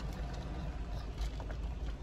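A man slurps a drink through a straw.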